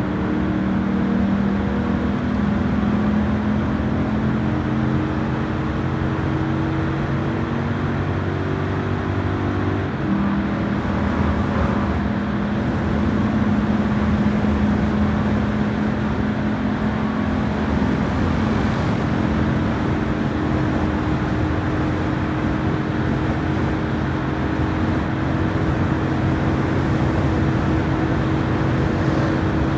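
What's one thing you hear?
A race car engine roars at high speed, steadily climbing in pitch.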